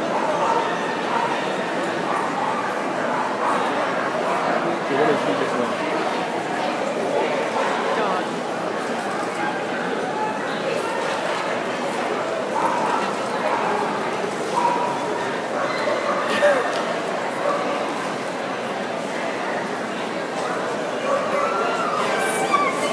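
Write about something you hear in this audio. A crowd murmurs and chatters throughout a large echoing hall.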